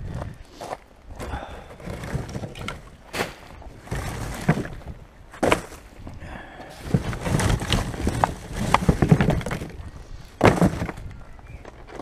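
Pieces of wood thud and clatter into a plastic bin.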